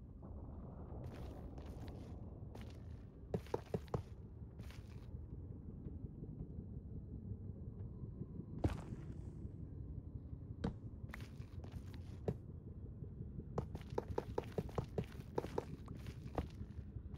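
Video game rails clack as they are placed one after another.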